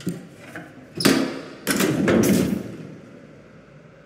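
A metal gate rattles loudly.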